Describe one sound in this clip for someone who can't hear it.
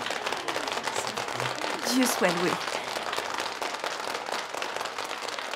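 A group of people clap their hands in lively applause.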